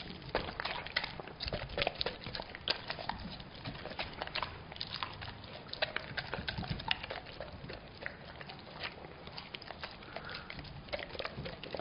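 A dog chews and crunches food.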